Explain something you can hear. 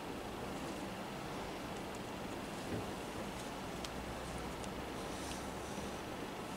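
Fingers rustle and rub against thick crocheted yarn.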